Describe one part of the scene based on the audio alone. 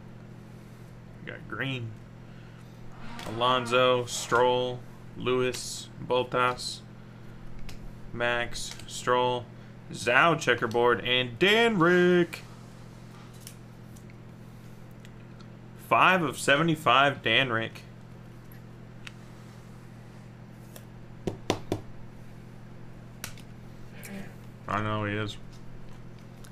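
Trading cards slide and rustle between hands.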